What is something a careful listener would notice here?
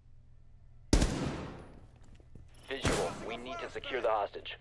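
A rifle fires sharp gunshots that ring out in a room.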